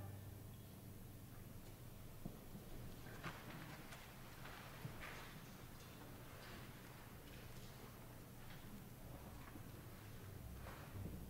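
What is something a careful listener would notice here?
An orchestra plays quietly in a large echoing hall.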